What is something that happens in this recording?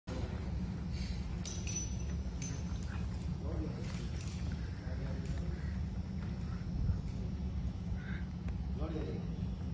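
Men talk quietly at a distance in a large echoing hall.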